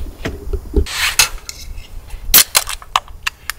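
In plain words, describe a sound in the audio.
A can's tab snaps open with a hiss.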